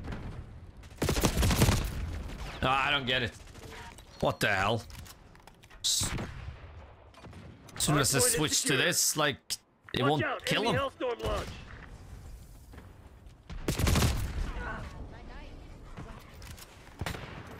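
Loud gunshots bang in bursts.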